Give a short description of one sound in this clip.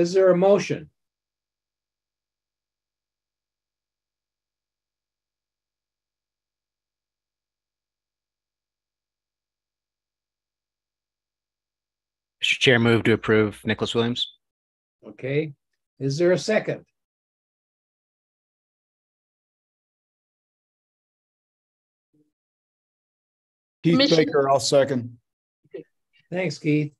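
A man speaks calmly over an online call, in short bursts with long pauses.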